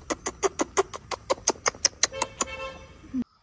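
A woman kisses a baby with rapid, loud smacking kisses.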